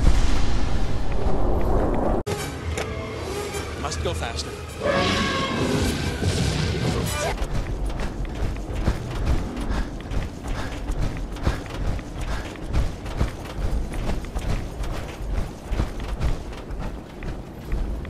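An electric charge crackles and buzzes.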